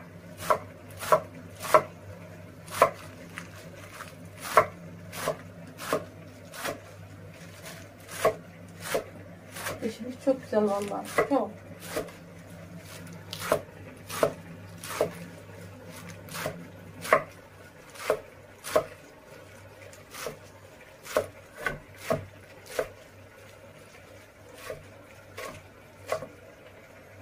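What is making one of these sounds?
A knife chops leaves on a wooden board in sharp, regular knocks.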